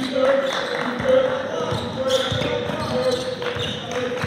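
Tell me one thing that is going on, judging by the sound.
A basketball bounces repeatedly on the floor.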